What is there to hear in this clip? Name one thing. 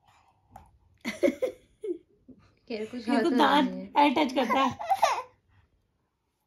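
A young woman speaks warmly and with animation close by.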